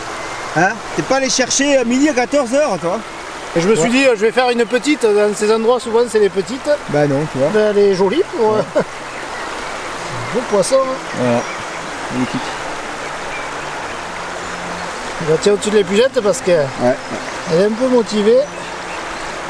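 A man talks calmly and cheerfully, close by.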